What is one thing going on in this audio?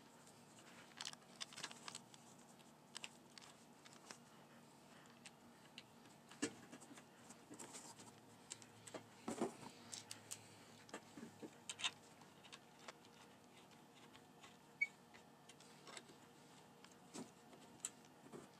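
A screwdriver clicks and scrapes against a metal bracket.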